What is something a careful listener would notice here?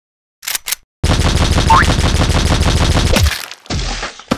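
A machine gun fires a rapid burst of shots.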